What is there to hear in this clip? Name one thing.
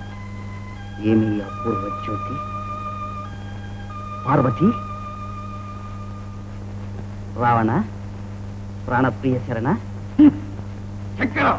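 A man speaks with strong feeling.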